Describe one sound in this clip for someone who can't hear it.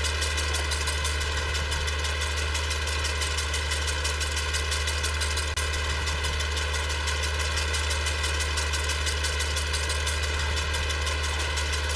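A mower clatters rapidly as it cuts grass.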